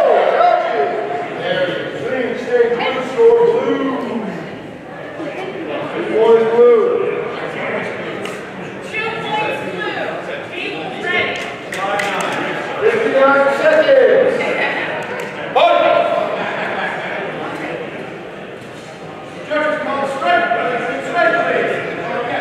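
Several men and women talk and call out in a large echoing hall.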